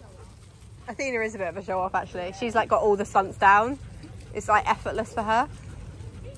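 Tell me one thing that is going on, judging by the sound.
A woman talks calmly to dogs nearby.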